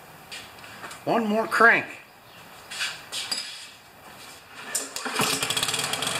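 A lawn mower's pull cord whirs several times.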